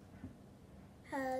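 A young girl speaks up close in a high voice.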